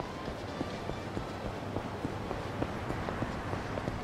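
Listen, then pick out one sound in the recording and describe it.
Footsteps run across pavement.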